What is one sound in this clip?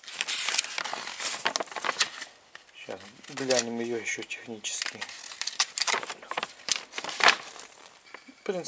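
Sheets of paper rustle and crinkle close by as they are leafed through.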